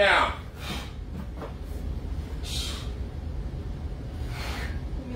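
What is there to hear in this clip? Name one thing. A young woman breathes out hard with each lift.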